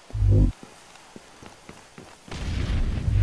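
Footsteps tap on hard pavement.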